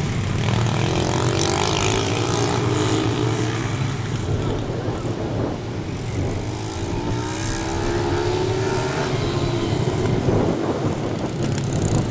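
Small dirt bike engines whine and rev nearby.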